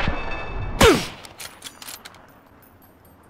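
A rifle shot cracks loudly and echoes.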